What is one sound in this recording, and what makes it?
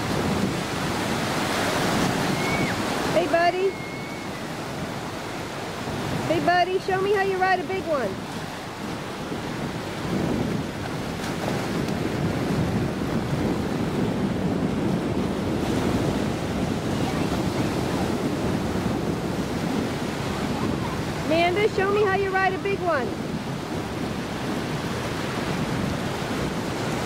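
Waves break and wash steadily onto the shore.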